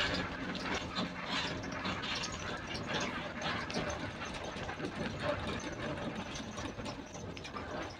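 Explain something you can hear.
Bus tyres roar on a paved road.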